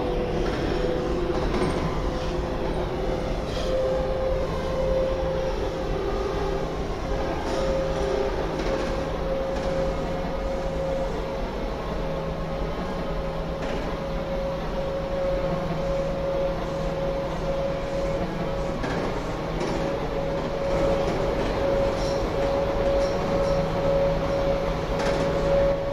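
A subway train rumbles and rattles along the tracks with a steady whine.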